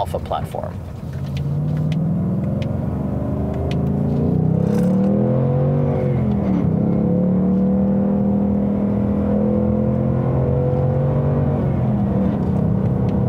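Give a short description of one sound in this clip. A car engine revs up, drops briefly during a gear change, then drones on steadily.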